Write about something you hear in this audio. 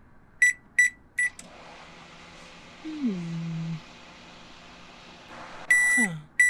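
A microwave beeps several times as its buttons are pressed.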